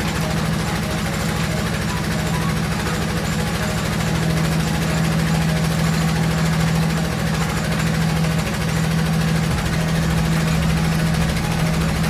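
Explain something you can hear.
A drilling rig engine runs with a loud, steady drone close by.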